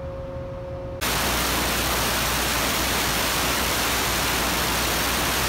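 A pneumatic chipping gun hammers loudly and rapidly against a steel floor.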